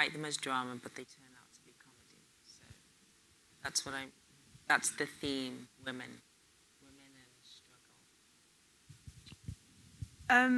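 A woman speaks into a microphone with animation, heard through loudspeakers in a room with some echo.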